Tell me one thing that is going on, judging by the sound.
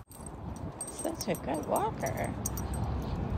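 A dog whines in high, wavering cries.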